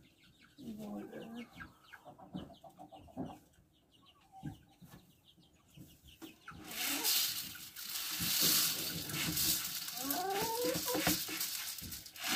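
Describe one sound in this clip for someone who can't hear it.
Hens cluck and squawk close by.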